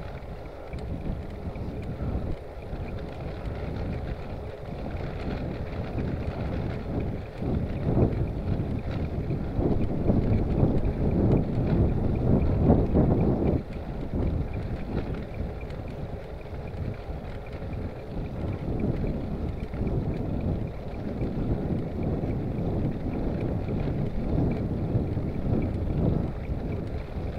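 Bicycle tyres roll on a paved road.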